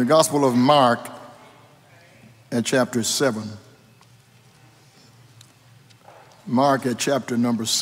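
An elderly man reads aloud calmly through a microphone in a reverberant hall.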